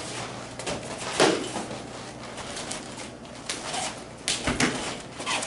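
Feet shuffle and squeak on a padded floor.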